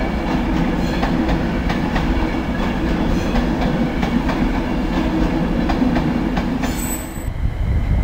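A high-speed train rumbles past along the tracks.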